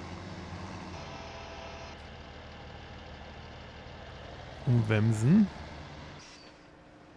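A tractor engine idles with a low hum.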